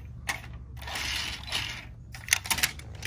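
A small toy car rolls across a glass surface.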